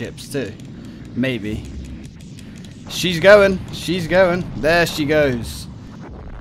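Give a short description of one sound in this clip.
Laser guns zap in rapid bursts.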